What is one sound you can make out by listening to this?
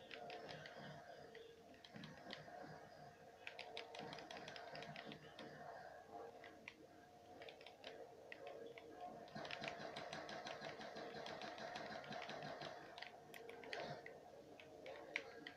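Video game music and effects play steadily through a television speaker.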